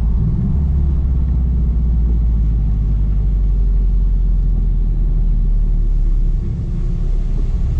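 A car engine rumbles steadily from inside the cabin.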